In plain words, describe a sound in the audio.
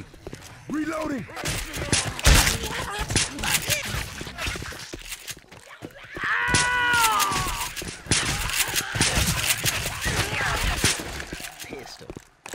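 A shotgun fires in loud, rapid blasts.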